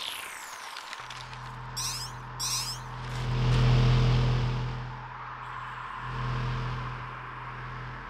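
A low electronic hum swells and drones.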